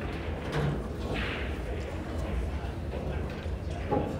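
A cue ball clacks sharply against another ball.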